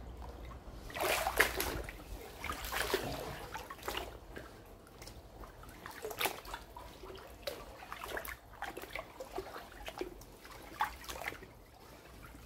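Footsteps slosh and splash through shallow floodwater.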